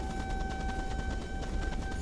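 Rain falls steadily in a forest.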